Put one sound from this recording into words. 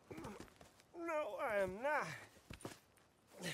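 A man answers breathlessly.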